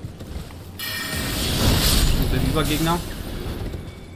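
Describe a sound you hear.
A magical blade swings with a bright, shimmering whoosh.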